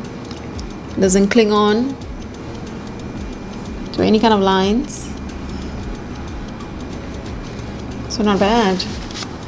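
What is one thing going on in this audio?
A young woman speaks close to a microphone in short, expressive phrases.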